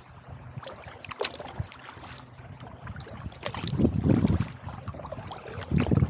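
Water laps and splashes against the hull of a small boat.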